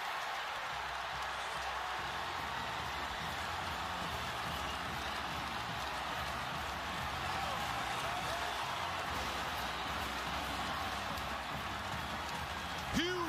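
A large stadium crowd cheers and roars loudly throughout.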